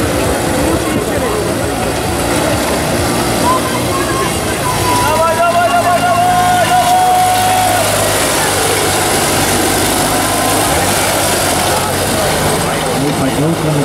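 A small tractor engine chugs and revs close by.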